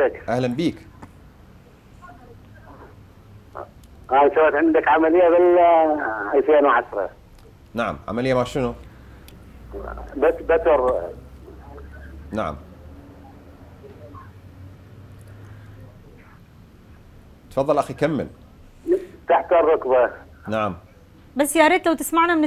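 A man speaks calmly and in bursts, heard close through a microphone.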